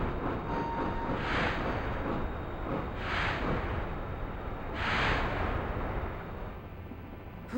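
A train rumbles and whooshes past several times.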